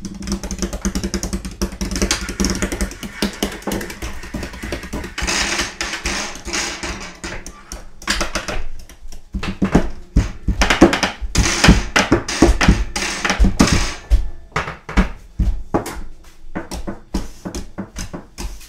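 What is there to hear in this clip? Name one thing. Utensils clink and clatter against a counter.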